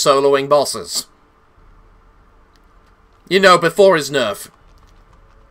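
A man speaks with animation close to a microphone, in short bursts.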